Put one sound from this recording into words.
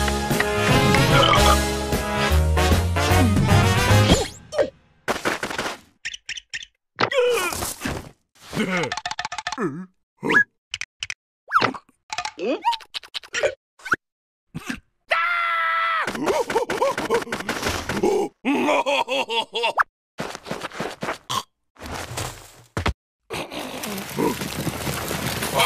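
A cartoon larva squeals and babbles in a high, silly voice.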